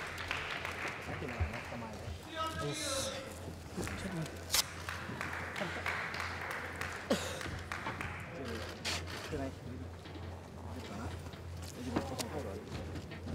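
A crowd chatters and murmurs in a large echoing hall.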